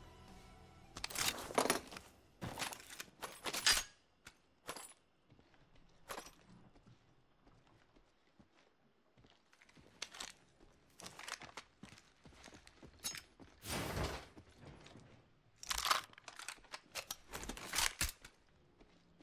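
Items are picked up with short clicks and rattles.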